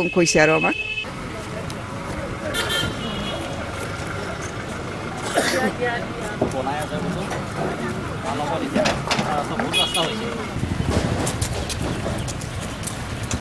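Men chatter in the background outdoors.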